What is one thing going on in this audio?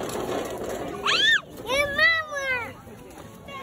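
A young child squeals and shouts excitedly nearby.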